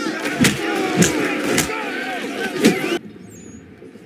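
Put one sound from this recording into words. Men shout and grunt in a brawl.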